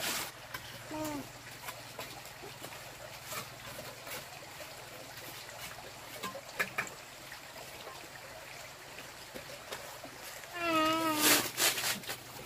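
A young child calls out nearby.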